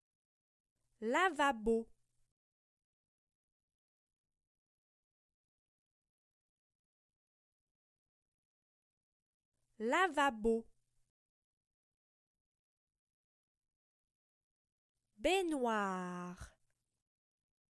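A woman pronounces single words slowly and clearly, with short pauses between them.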